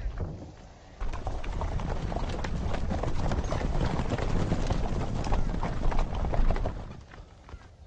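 Horses gallop in a thundering rush of hooves.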